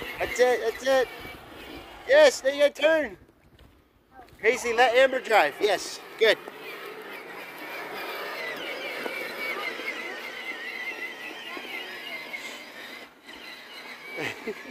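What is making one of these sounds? A toy electric car's motor whirs steadily.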